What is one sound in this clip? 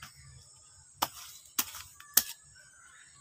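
A hoe chops into soil with a few sharp thuds.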